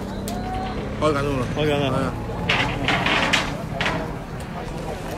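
A second man talks close by.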